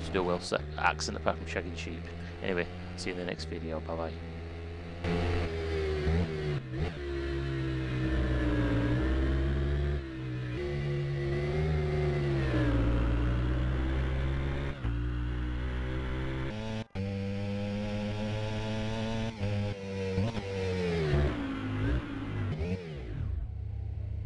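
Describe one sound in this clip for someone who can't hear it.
Motorcycle engines roar and rev up and down as they race past.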